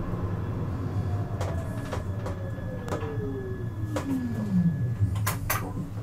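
A tram's motor whines and slowly falls in pitch.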